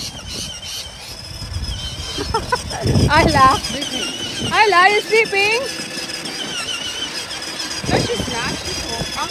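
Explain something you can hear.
Plastic wheels of a toy car rumble over paving stones.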